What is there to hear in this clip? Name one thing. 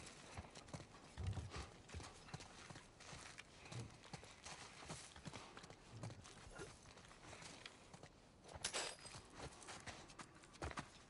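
Footsteps crunch on debris-strewn floor.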